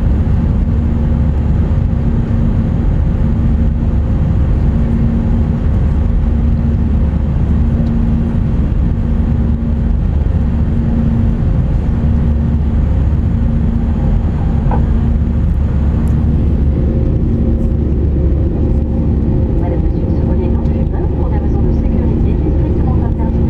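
Jet engines roar with a steady, deep hum inside an airliner cabin.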